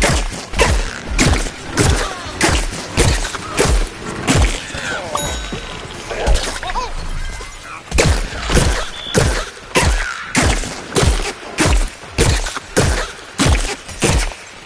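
A cannon in a video game fires again and again with heavy booming thumps.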